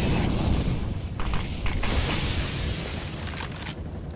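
A smoke grenade hisses as it spreads.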